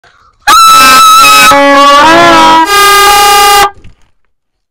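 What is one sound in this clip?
Children blow loud plastic toy horns up close.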